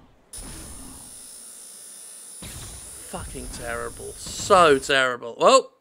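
A laser gun fires in short bursts.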